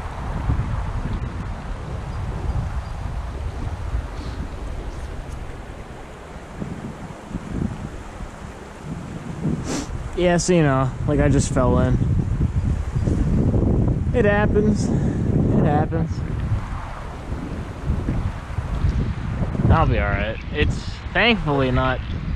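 A stream flows and ripples gently.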